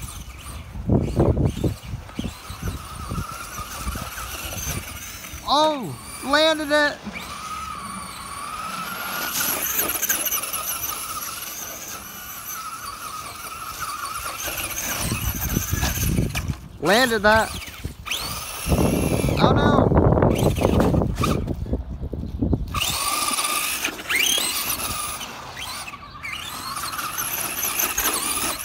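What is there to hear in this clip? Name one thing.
A small electric motor whines and revs as a toy car speeds about.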